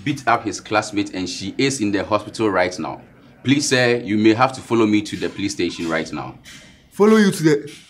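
A young man speaks firmly, close by.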